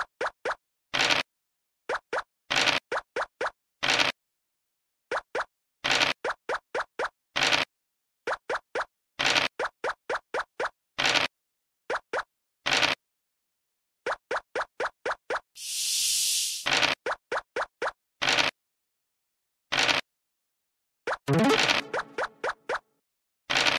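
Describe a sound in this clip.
Dice rattle briefly as they roll.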